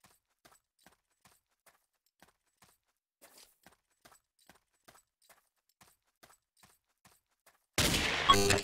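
A pickaxe chips at stone blocks with quick, faint, regular taps.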